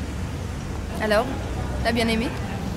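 A young woman talks quietly outdoors.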